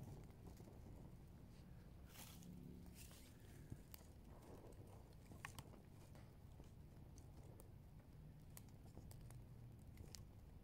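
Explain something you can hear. A small fire crackles and pops as dry grass and twigs catch.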